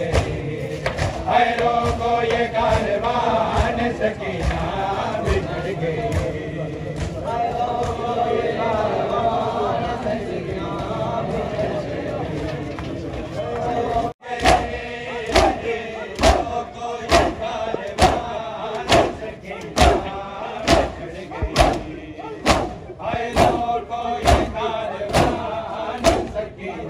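A large crowd of men chants together outdoors.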